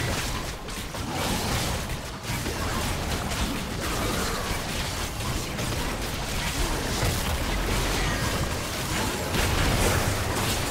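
Game characters clash with sharp hits and impacts.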